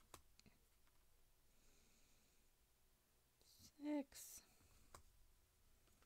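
Cards slide and tap softly against each other.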